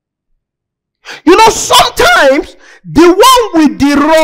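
A young man speaks loudly and with animation through a microphone.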